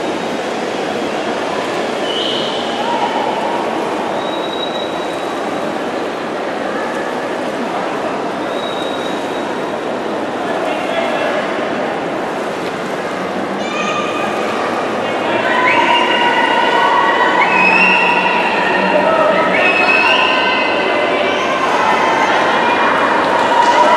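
Swimmers splash and churn the water in a large echoing indoor pool.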